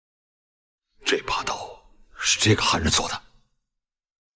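A man speaks in a low, serious voice, close by.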